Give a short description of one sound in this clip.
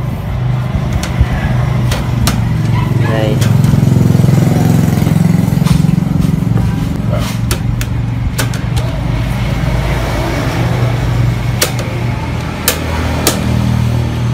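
Metal wires of a fan guard click and rattle as hands handle it.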